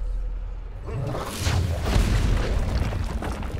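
A hammer smashes into a stone statue, shattering it with a loud crash.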